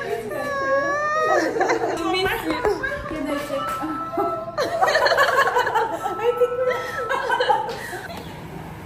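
Two women laugh happily together.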